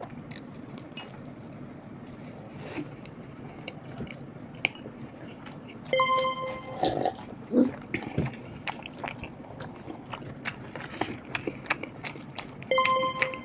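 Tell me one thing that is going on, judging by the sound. A man and a woman chew food with soft, wet mouth sounds.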